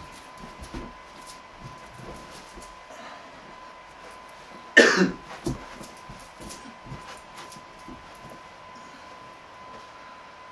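Footsteps thump on a floor.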